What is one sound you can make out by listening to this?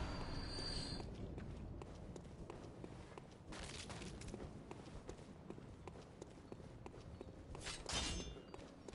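Footsteps tap steadily on stone paving.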